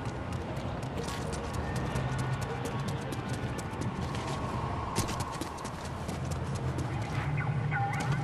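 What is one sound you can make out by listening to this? Footsteps patter quickly on pavement as a game character runs.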